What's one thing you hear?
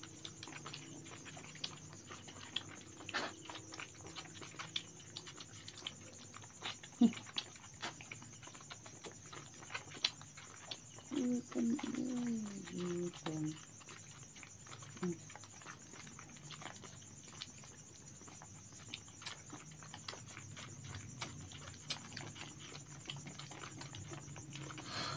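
Puppies suckle noisily at milk bottles with small wet smacking clicks.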